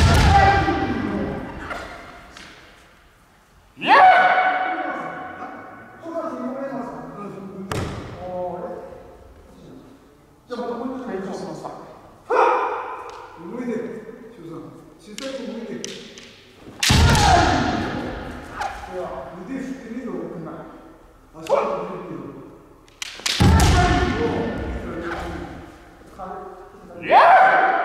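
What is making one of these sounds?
Fencers shout loudly in a large echoing hall.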